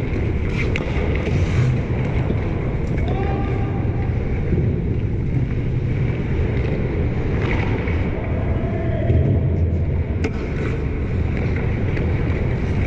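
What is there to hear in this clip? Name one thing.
Skates scrape across ice in a large echoing arena.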